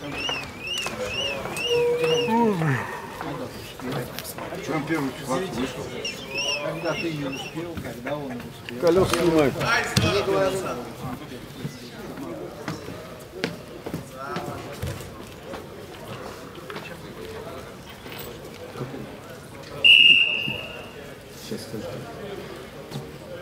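Men shout encouragement loudly in an echoing hall.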